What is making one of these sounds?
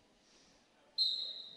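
Sneakers squeak on a hard floor in an echoing gym.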